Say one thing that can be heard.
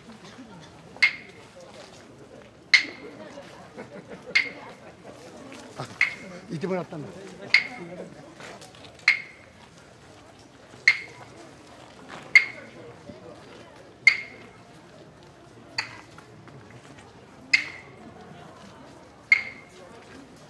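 Wooden clappers knock sharply at a slow, steady pace.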